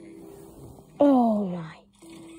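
A game on a tablet plays a short electronic tone that slides downward.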